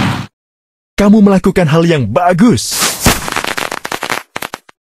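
Cheerful chimes ring out in celebration.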